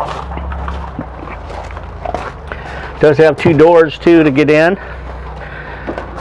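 A man's footsteps crunch on gravel.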